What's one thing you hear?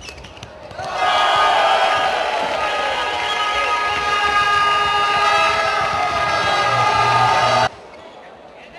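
A large crowd cheers and chants loudly in an echoing arena.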